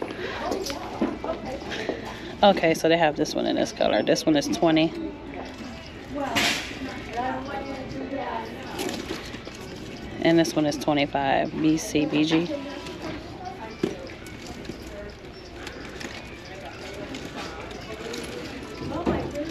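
Metal chains on handbags jingle softly as they are handled.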